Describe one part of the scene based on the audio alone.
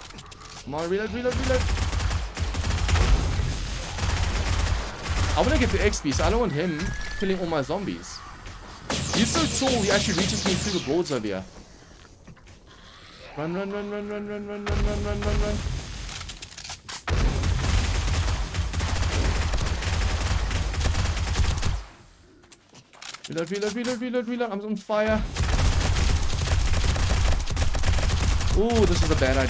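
Monsters groan and snarl.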